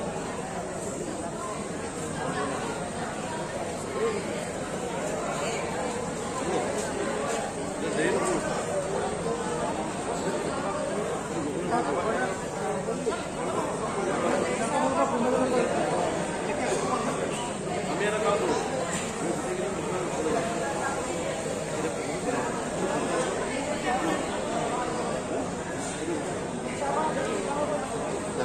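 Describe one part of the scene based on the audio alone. A crowd of men and women chatters all around in an indoor hall.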